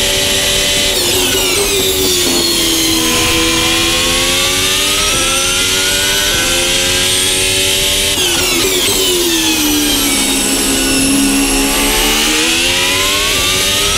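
A racing car engine drops in pitch as the car brakes and downshifts for corners.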